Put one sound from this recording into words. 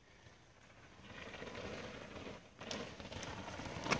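A mountain bike rolls closer over a rough dirt trail, its tyres crunching on gravel.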